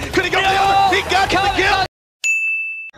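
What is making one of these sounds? A young man shouts excitedly.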